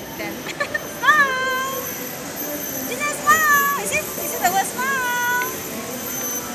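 A young child squeals and shrieks with excitement close by.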